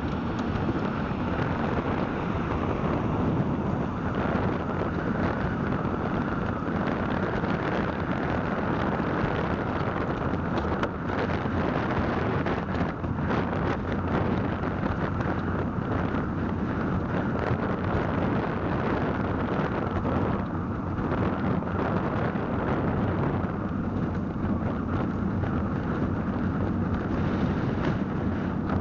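Tyres roll over pavement with a low rumble.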